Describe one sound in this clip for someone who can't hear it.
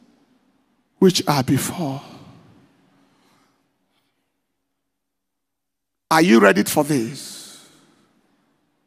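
A man preaches in short, emphatic bursts through a microphone in a hall that echoes.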